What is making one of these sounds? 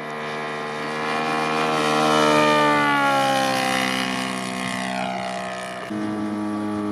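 A propeller plane roars past close by, its engine pitch dropping as it goes.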